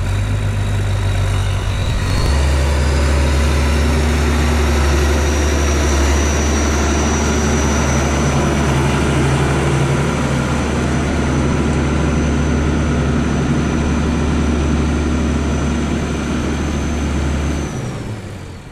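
A tractor engine rumbles loudly as the tractor drives up close and passes by.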